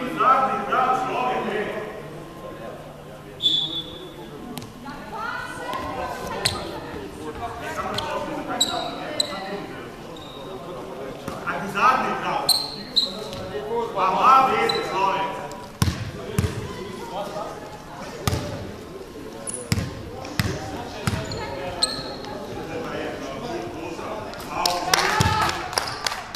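Young men call out and talk across a large echoing hall.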